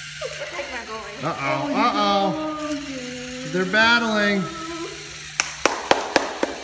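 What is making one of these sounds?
Small robot motors whir.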